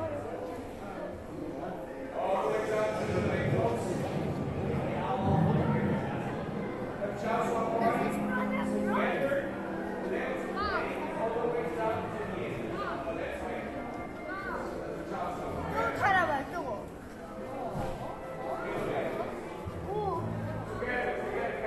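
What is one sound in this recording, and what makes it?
A crowd of people murmurs and talks in a large echoing hall.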